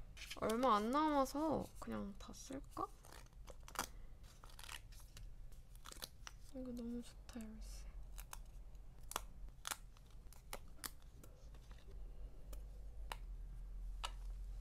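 Sticker sheets rustle and crinkle in hands.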